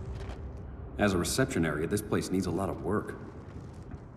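A man speaks with mild humour, close by.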